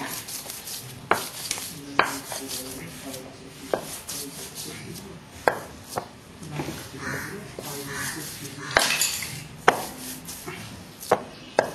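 Fingers press and smear soft clay on a slab.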